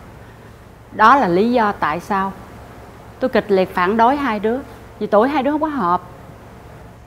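A middle-aged woman speaks earnestly close by.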